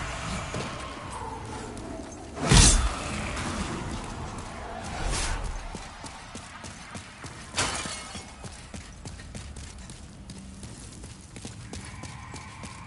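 Armoured footsteps crunch on stone.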